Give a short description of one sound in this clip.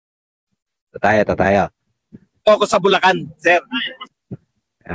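A man speaks with animation into a microphone, close by.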